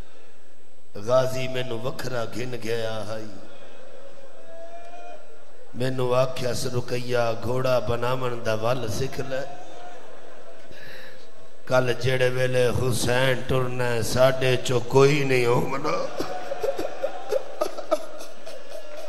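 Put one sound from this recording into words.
A middle-aged man chants a lament loudly and emotionally into a microphone, echoing through loudspeakers.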